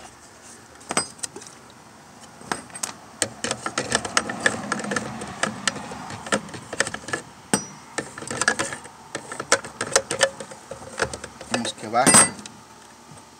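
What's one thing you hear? Plastic parts click and rattle as they are handled close by.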